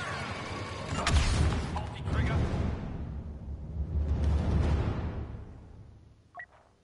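Explosions boom with a deep rumble.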